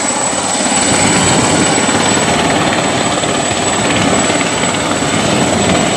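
A helicopter's rotor thumps overhead.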